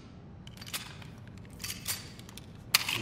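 A pistol clicks as it is handled.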